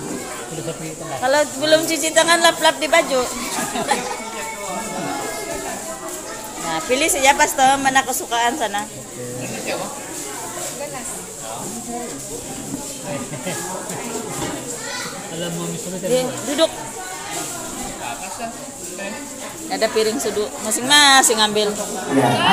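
Several people talk in the background.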